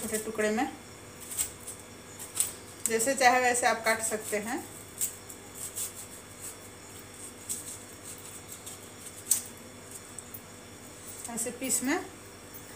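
A knife slices through watermelon.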